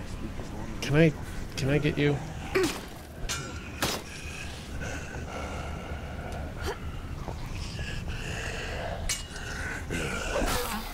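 A zombie growls and groans close by.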